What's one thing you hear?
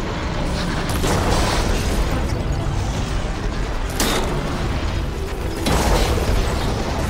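A bow string snaps as arrows fly.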